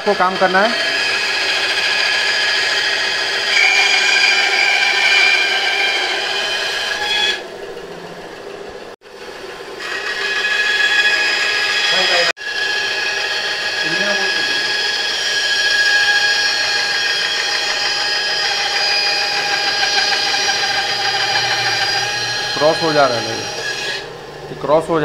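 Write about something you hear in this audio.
A band saw whines steadily as its blade cuts through wood.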